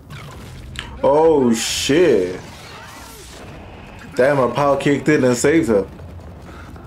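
A young man exclaims with animation close to a microphone.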